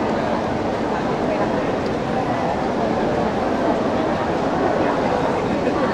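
A crowd chatters loudly nearby in a busy, echoing space.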